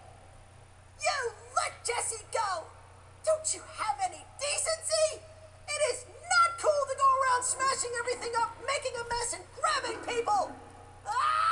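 A young man speaks urgently up close.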